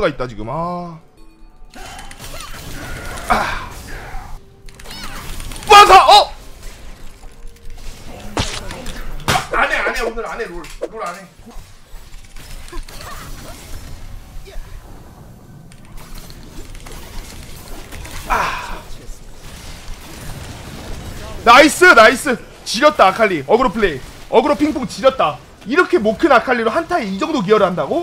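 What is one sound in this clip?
A young man talks excitedly into a close microphone, at times shouting.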